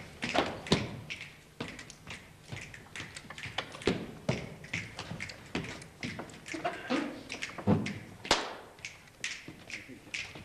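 Footsteps stamp and thud on a hollow wooden stage.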